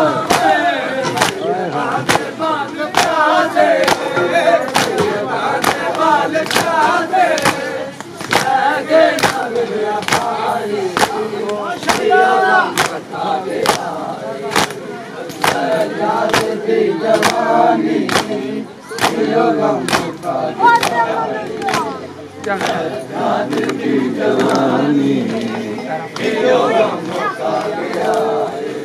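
A crowd of men chant loudly together outdoors.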